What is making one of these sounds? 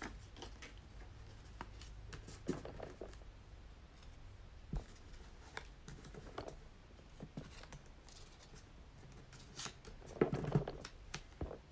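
Paper crinkles and is creased by hand.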